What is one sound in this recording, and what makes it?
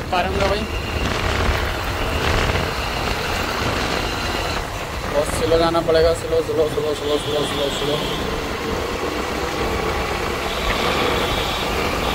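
Wind rumbles against a moving microphone outdoors.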